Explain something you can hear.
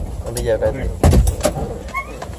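A car door opens.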